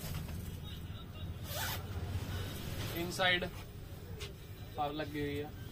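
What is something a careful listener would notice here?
Fabric rustles as a jacket is handled.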